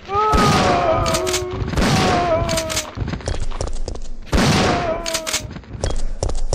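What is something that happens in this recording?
A monster groans and snarls loudly.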